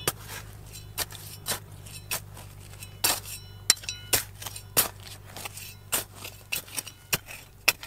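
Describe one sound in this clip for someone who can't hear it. Loose soil and pebbles trickle and patter down.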